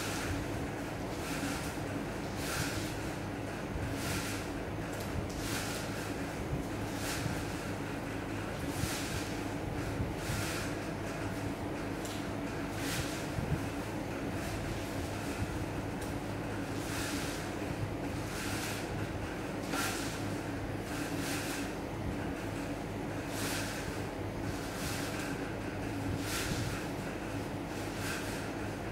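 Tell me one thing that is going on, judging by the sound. Twine rustles and swishes softly as a man winds it into a ball by hand.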